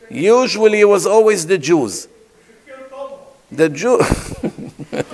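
A middle-aged man speaks with animation into a microphone in an echoing hall.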